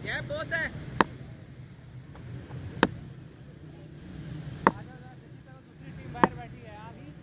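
A cricket bat taps sharply on hard ground.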